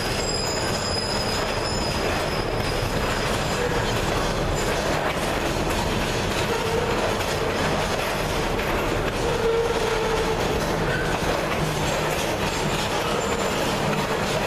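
Metal wheels squeal faintly against the rails.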